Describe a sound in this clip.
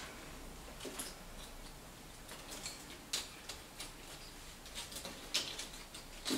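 Dry pine cones rustle and clack as hands handle them.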